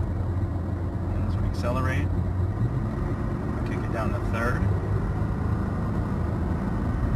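A car engine hums and tyres rumble steadily on the road, heard from inside the car.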